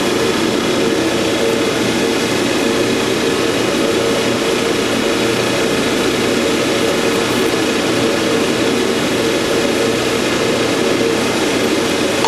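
A machine drum hums loudly and steadily.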